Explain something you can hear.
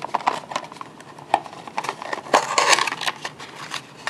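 A cardboard box scrapes and taps as it is moved.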